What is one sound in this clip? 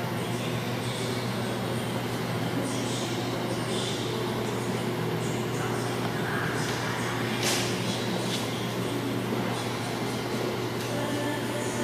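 A packaging machine hums and whirs steadily.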